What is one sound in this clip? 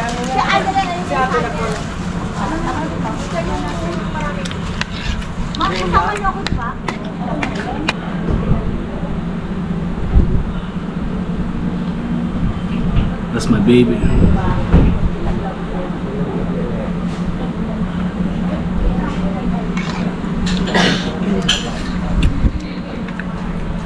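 A man chews food and smacks his lips.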